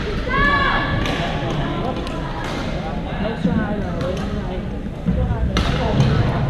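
Badminton rackets strike a shuttlecock with sharp pops.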